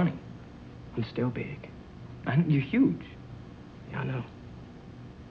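A young man talks quietly nearby.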